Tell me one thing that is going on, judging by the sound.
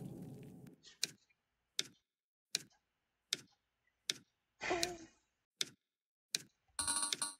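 Short electronic blips tick evenly, like text typing out letter by letter.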